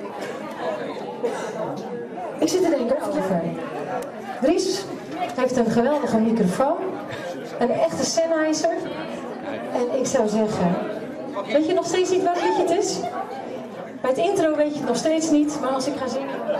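A woman speaks with animation into a microphone, heard through loudspeakers in an echoing room.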